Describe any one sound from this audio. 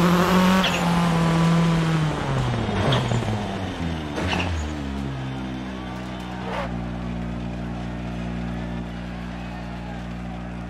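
A rally car engine revs, slows down, then idles.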